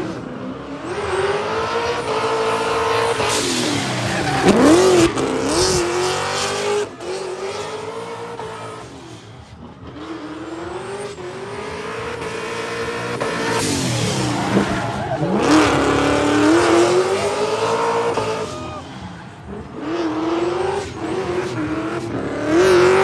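A car engine revs hard and roars up and down in pitch.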